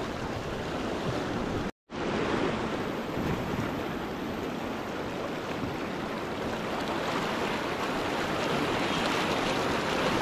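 River rapids rush and roar loudly close by.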